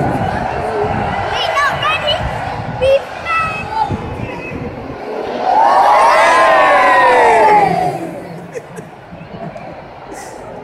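A large stadium crowd cheers and chatters outdoors.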